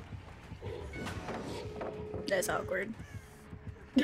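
A heavy wooden pallet slams down with a crash.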